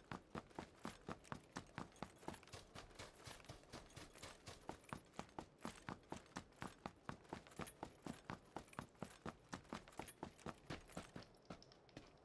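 Footsteps run on a road.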